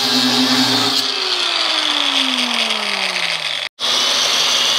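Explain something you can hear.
An angle grinder's motor winds down, its pitch dropping.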